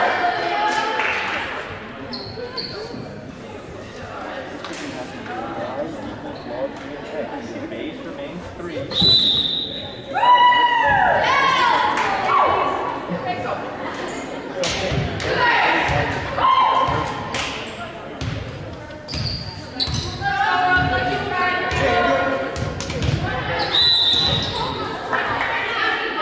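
Young women shout and cheer in a large echoing gym.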